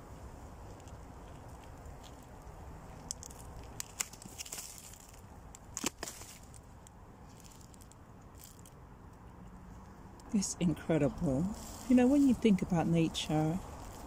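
A gloved hand brushes and crumbles loose soil.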